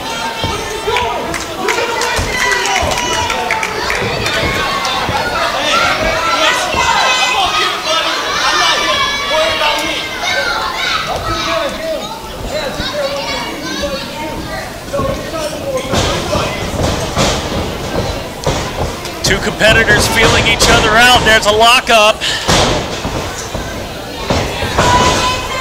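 A crowd chatters and cheers in an echoing hall.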